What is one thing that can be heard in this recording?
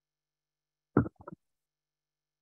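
A microphone is knocked with a loud thump close by.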